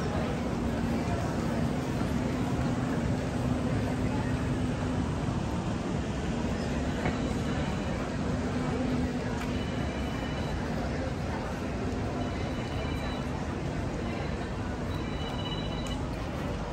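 A crowd of people chatters around outdoors.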